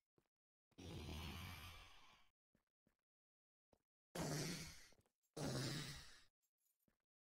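A cave creature hisses and growls in bursts.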